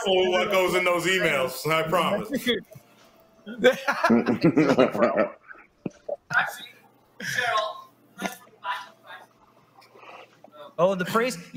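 Adults talk and laugh with animation over an online call.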